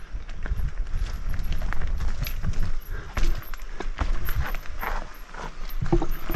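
Wind rumbles against a helmet microphone.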